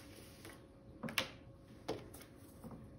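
A small plastic block taps and scrapes on a wooden table as it is picked up.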